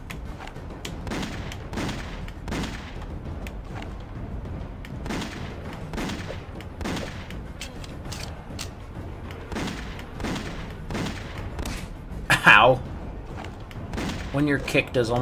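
Gunshots ring out in short repeated bursts.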